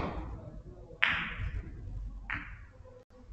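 Billiard balls click together.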